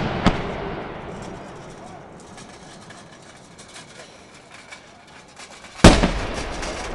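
Fireworks explode with loud booming bangs.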